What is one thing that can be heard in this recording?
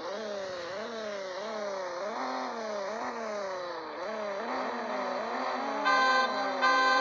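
A car engine revs up and down while idling.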